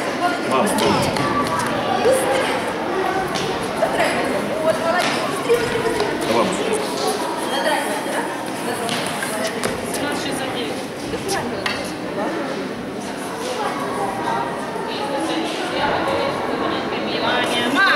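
A tennis racket hits a ball with sharp pops.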